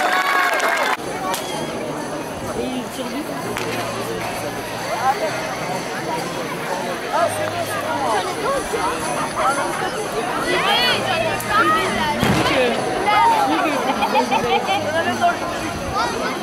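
A crowd of people chatters in the open air.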